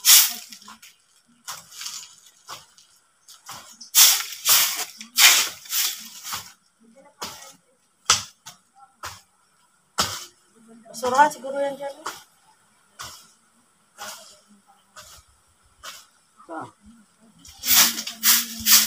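A rake scrapes across the ground in repeated strokes.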